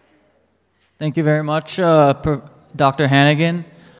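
A man speaks loudly into a microphone in a large echoing hall.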